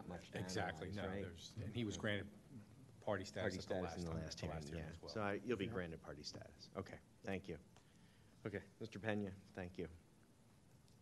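A man speaks calmly over a microphone.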